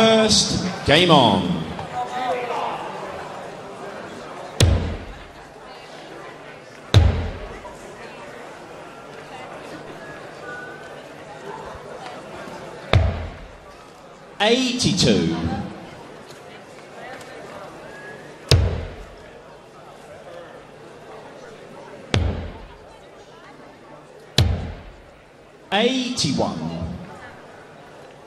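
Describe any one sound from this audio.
A man calls out scores loudly through a microphone in a large hall.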